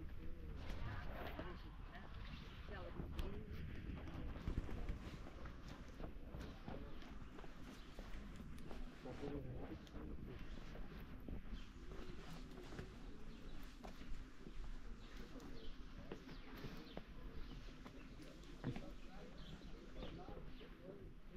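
Footsteps crunch and tap along a stone path outdoors.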